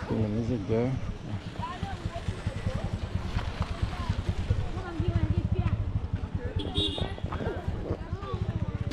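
A motorcycle engine idles and putters nearby.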